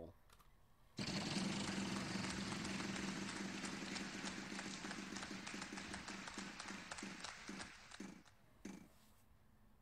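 A game wheel spins with rapid ticking clicks that slow down.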